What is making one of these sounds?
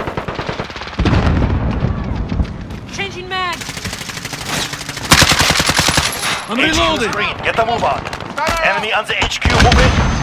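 Rapid rifle gunfire rattles close by.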